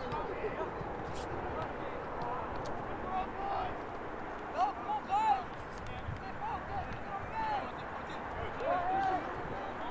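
Young players shout to each other in the distance.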